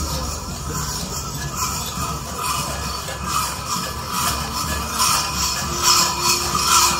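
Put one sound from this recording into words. Many footsteps of a marching parade tramp along a paved street.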